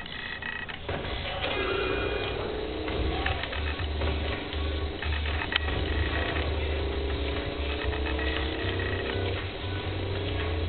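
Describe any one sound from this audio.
A toy car engine hums steadily.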